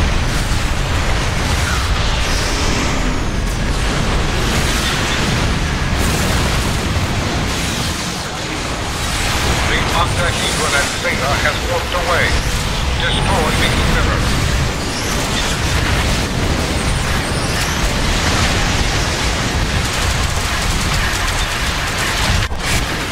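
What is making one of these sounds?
Energy beams blast and crackle loudly.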